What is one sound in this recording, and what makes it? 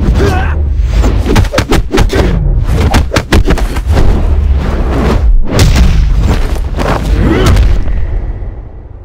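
Heavy punches land with loud thuds and whooshes.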